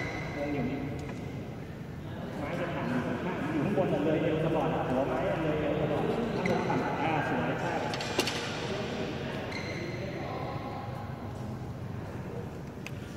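Young men talk with each other in a large echoing hall.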